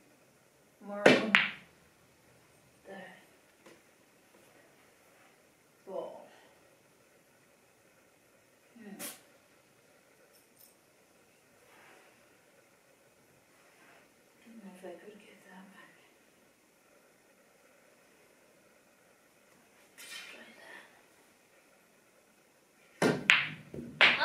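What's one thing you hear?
A cue sharply strikes a billiard ball.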